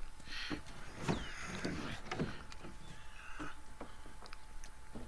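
A wooden plank thuds and scrapes.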